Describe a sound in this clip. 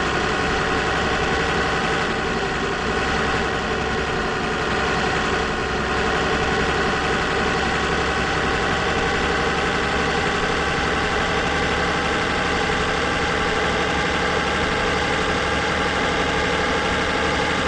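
A truck's diesel engine rumbles steadily.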